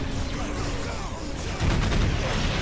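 Guns fire and crackle in a battle.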